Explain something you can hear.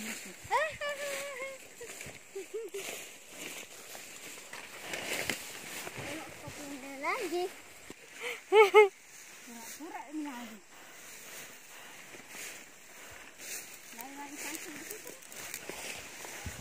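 Leaves and grass rustle underfoot as someone walks through dense plants.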